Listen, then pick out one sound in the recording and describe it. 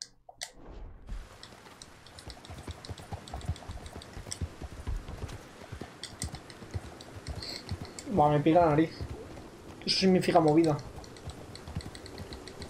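Horse hooves clop steadily on a cobbled street.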